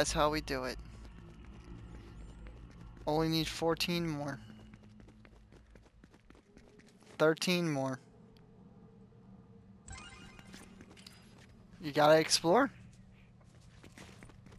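Footsteps patter quickly across a hard floor.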